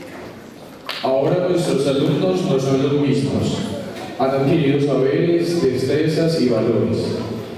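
A man speaks clearly through a microphone.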